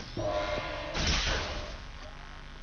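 A magical burst whooshes and crackles.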